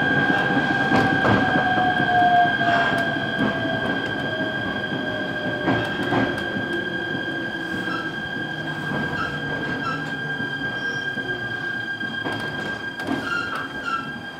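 Wheels clack over rail joints.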